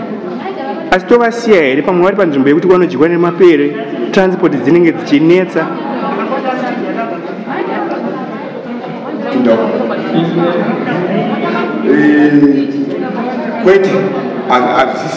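An elderly man speaks expressively and close to the microphone.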